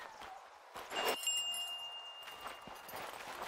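A bright chime rings once as something is picked up.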